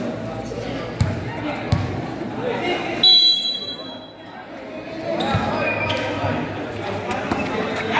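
A basketball bounces on a hard court.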